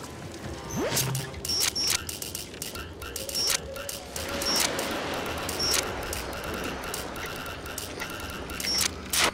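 Sharp mechanical clicks tick at an uneven pace.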